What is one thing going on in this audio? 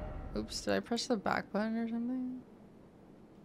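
A young woman talks with animation into a close microphone, drawing out her last word.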